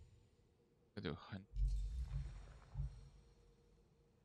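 A deep whooshing swell rumbles as a new menu opens.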